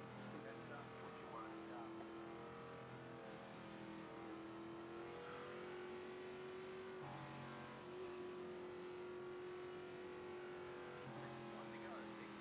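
A race car engine drones steadily at a low pace, shifting pitch now and then.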